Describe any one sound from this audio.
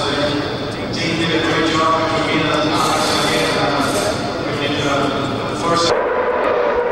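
A man speaks calmly into a microphone outdoors.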